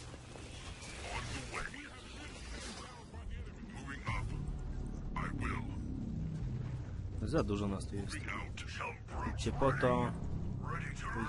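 A low rumble drones steadily.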